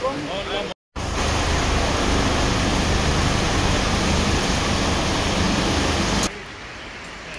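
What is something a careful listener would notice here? A river rushes loudly close by.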